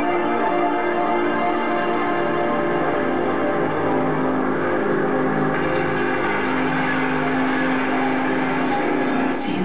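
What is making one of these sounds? Loud electronic music plays through large speakers on a stage.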